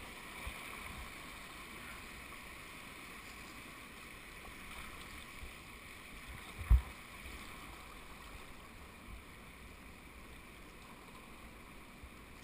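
River rapids rush and splash steadily outdoors.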